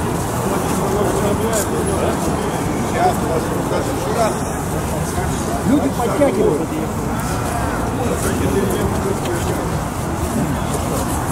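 An elderly man speaks calmly, close by, outdoors.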